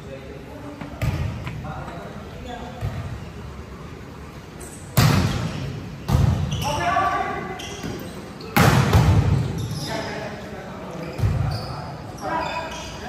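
A volleyball is struck with sharp thuds that echo around a large hall.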